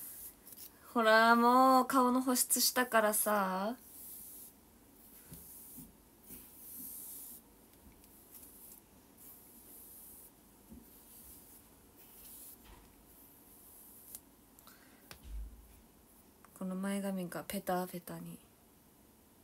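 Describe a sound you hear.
A young woman sings in a high, bright voice close to a microphone.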